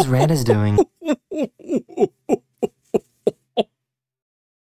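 A young man laughs in short, rising bursts close to a microphone.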